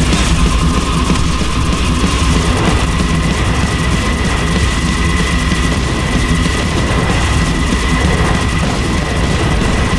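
Fireballs burst with loud roaring explosions.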